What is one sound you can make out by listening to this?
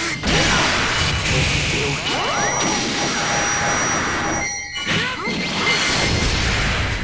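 Game sound effects whoosh and sparkle in quick bursts.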